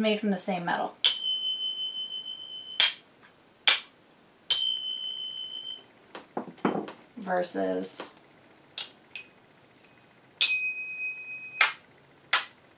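Small finger cymbals clash together and ring out brightly.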